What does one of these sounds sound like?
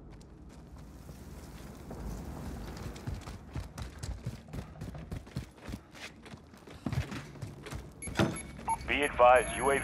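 Footsteps crunch quickly over gravel and stone.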